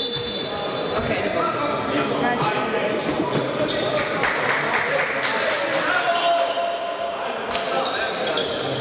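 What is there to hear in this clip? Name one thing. Players and spectators call out, echoing in a large hall.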